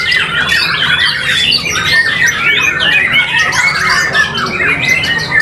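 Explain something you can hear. A songbird sings a rapid, varied warbling song close by.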